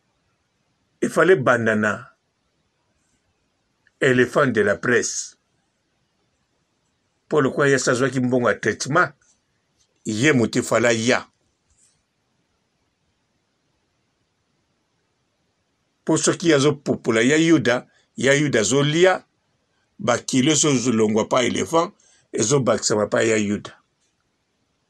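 A man speaks calmly close to a microphone, in bursts with pauses.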